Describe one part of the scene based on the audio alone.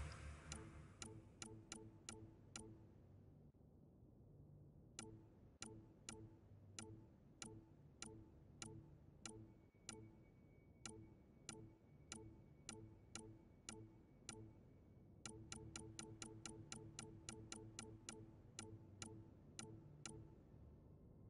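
Short electronic clicks tick one after another as a menu scrolls.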